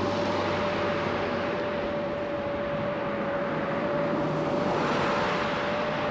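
A truck drives by close and loud.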